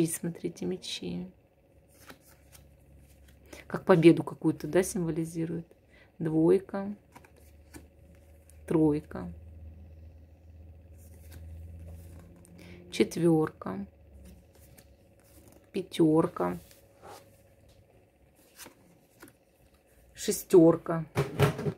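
Playing cards slide and tap softly against each other.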